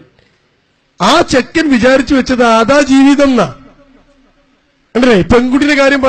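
A man speaks forcefully into a microphone, heard through a loudspeaker.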